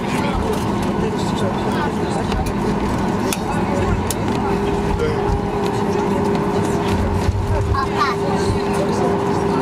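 Airliner wheels rumble over the ground.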